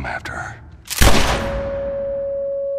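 A gunshot cracks loudly at close range.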